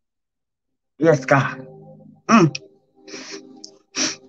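A woman sobs.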